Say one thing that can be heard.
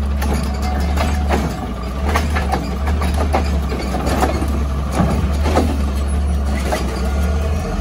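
Metal clanks and bangs as a truck's lifting arm raises and tips a bin.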